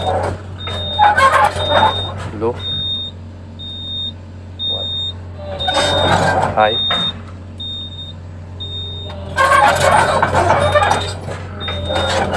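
Hydraulics whine and hiss in bursts as control levers are worked.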